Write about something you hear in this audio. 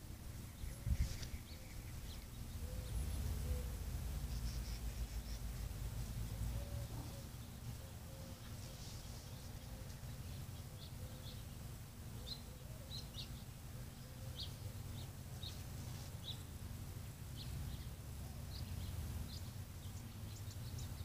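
Leaves rustle in a tree.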